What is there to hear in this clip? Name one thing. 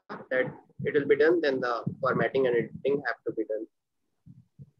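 A young man speaks clearly over an online call.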